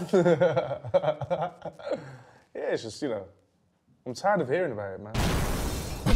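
Young men talk and laugh loudly into microphones.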